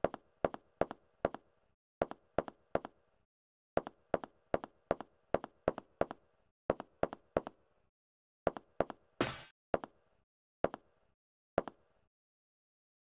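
Boots clank on metal stairs and a hard floor.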